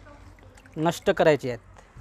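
Water drips and trickles from a sieve into a metal pot.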